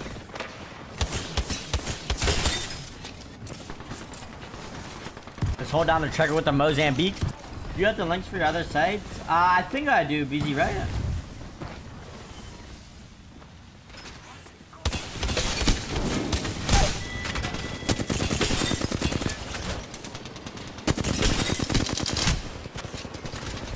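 Gunfire from a game rattles in rapid bursts.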